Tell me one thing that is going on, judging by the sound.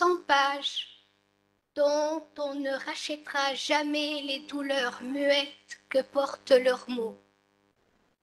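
An older woman reads aloud calmly into a microphone.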